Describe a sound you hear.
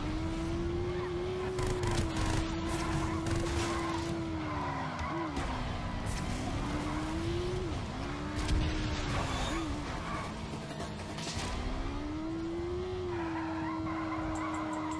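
A motorcycle engine hums steadily, its pitch rising and falling as it speeds up and slows down.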